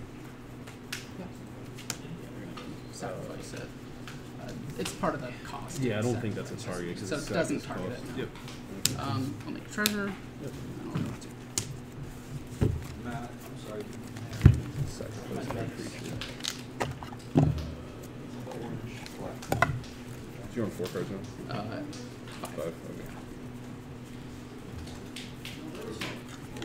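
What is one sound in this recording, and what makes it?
Playing cards riffle and shuffle softly.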